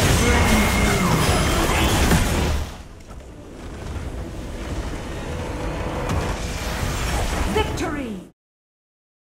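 Game spell effects crackle and burst in a loud battle.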